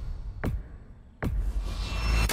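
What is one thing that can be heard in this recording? A menu selection clicks sharply.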